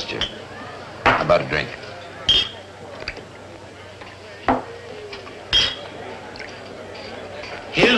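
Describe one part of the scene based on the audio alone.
A bottle clinks against a glass as a drink is poured.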